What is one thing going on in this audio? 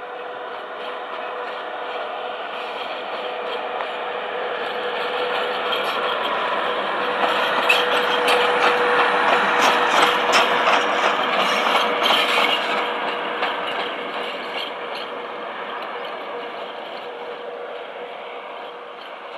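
An electric locomotive hums as it approaches, passes close by and fades away.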